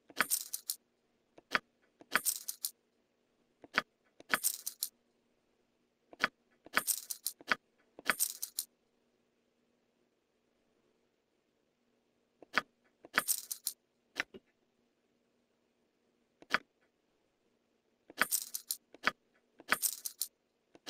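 Short clicking sounds come in quick bursts, again and again.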